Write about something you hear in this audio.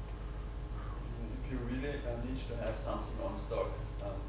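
A man speaks calmly at a distance in an echoing room.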